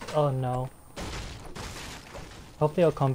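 A gun fires a shot.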